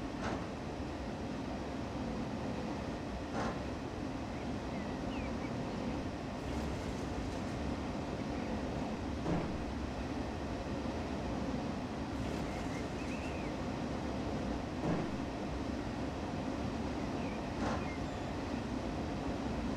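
A freight train rumbles steadily past on the rails.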